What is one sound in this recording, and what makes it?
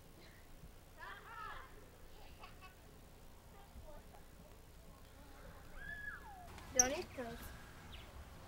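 Young children shout and chatter nearby outdoors.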